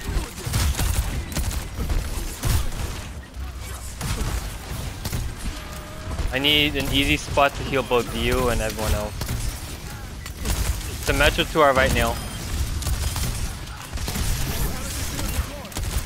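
A futuristic gun fires rapid bursts of shots.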